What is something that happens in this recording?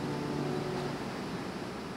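A piano plays a held chord and then fades away.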